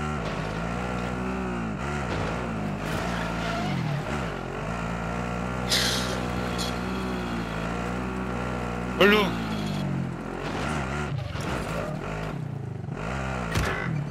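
A quad bike engine revs up and down as it speeds along.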